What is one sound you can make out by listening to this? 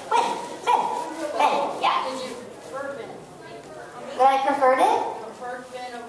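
A woman speaks with animation into a microphone, heard through loudspeakers in a large echoing hall.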